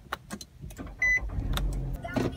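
A push-button starter beeps.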